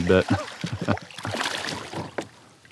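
Water splashes loudly close by as a fish thrashes at the surface.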